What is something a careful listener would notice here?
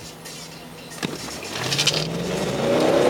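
A car engine starts with a click and a whir.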